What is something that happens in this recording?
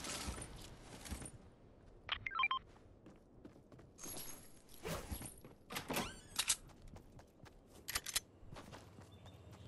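Footsteps tap on wooden floors and pavement.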